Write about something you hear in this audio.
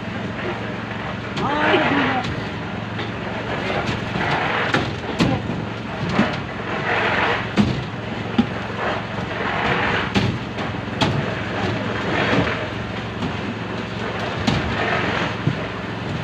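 Wet concrete slops out of buckets onto steel rebar.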